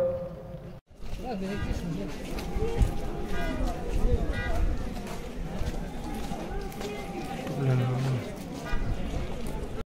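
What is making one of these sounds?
A crowd murmurs and chatters in a street.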